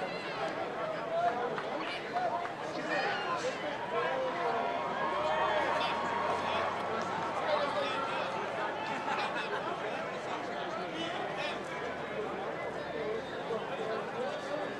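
Several men shout and call out to each other outdoors.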